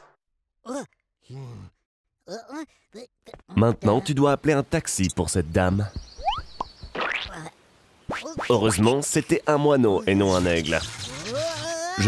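A young man talks excitedly.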